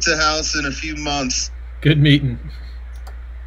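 A man speaks through an online call.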